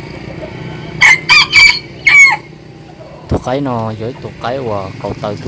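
A rooster crows loudly nearby.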